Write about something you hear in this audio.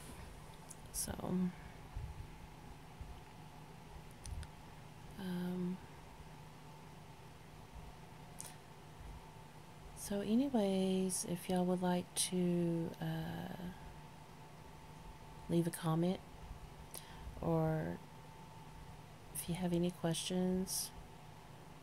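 A woman speaks softly and sleepily, close by, in short bursts.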